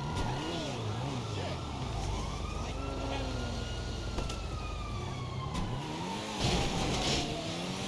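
A car engine revs as a car drives off.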